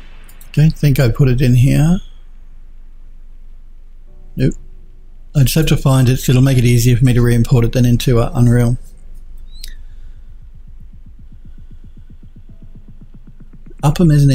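A man talks calmly and close into a microphone, in bursts with pauses.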